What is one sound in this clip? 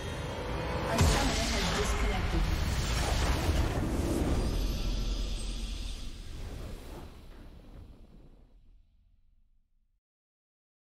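A game's victory fanfare swells with a whooshing burst and slowly fades.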